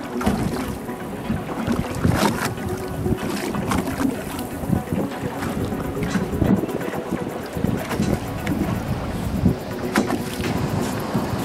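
Waves slosh against a boat's hull.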